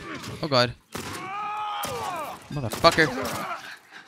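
A gunshot cracks.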